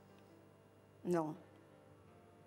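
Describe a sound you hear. An older woman says a few words through a microphone.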